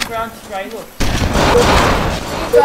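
An explosion booms and crackles.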